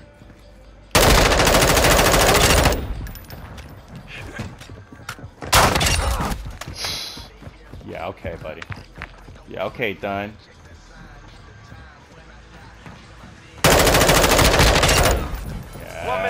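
An automatic rifle fires in rapid, loud bursts.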